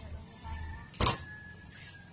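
A car boot slams shut nearby.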